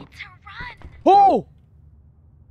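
A young man gasps loudly in surprise.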